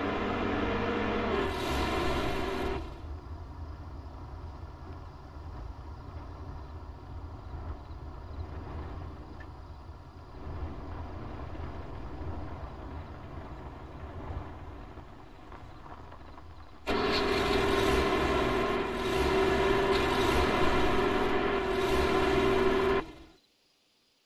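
A vehicle's engine rumbles as it drives over rough ground.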